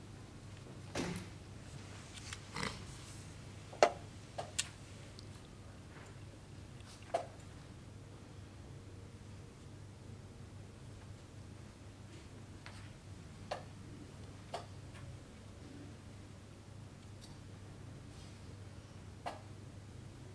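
A game clock button is pressed with a sharp click.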